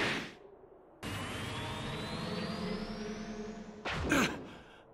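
A small spaceship flies overhead with a rising hum.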